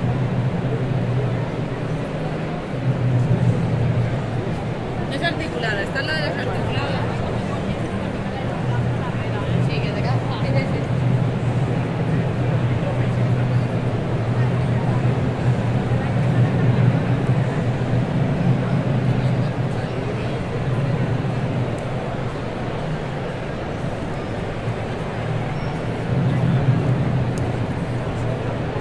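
A crowd of people chatters in a busy, echoing hall.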